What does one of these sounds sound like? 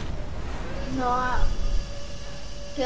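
A goal explosion booms loudly.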